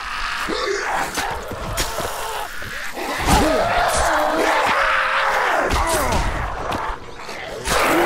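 A blade strikes flesh with heavy, wet thuds.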